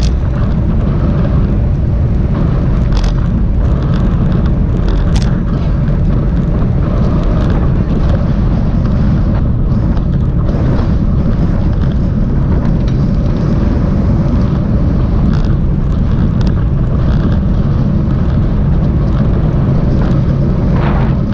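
Strong wind rumbles and buffets loudly outdoors.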